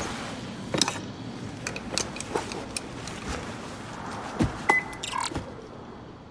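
Clicks and soft beeps come from an electronic machine.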